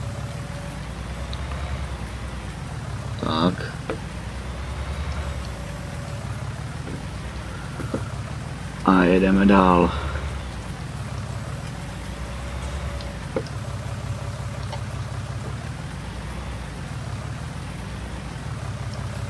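A tractor engine rumbles steadily, its pitch rising and falling as it drives.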